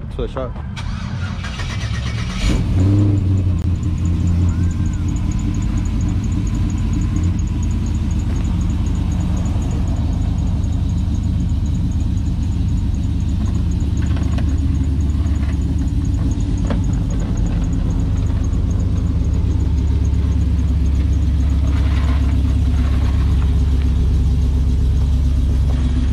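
A pickup truck's engine idles with a deep, steady rumble.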